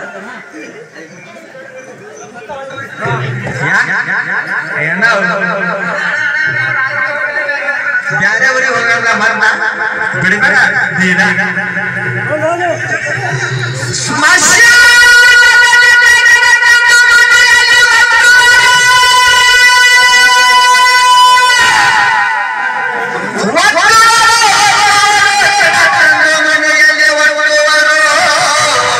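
A man sings loudly through a microphone and loudspeakers outdoors.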